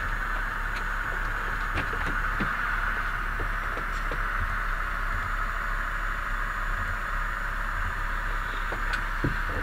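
Tyres roll steadily on the road.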